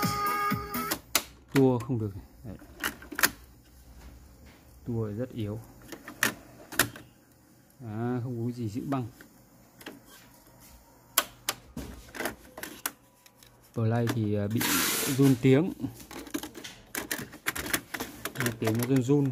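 Plastic clicks and clatters as a cassette is handled in a tape deck.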